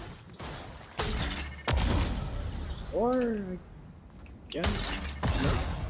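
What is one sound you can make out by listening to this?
Explosive blasts boom from a video game.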